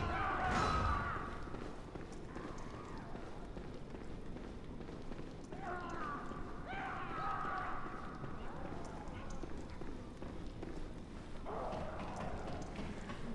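Footsteps tap on a hard stone floor.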